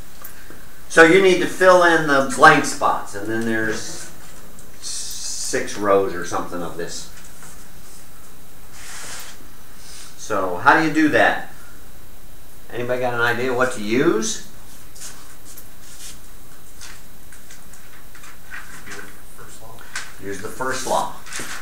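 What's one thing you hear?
An elderly man lectures aloud, in bursts with pauses between them.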